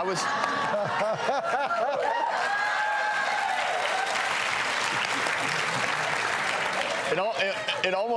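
A studio audience laughs and applauds.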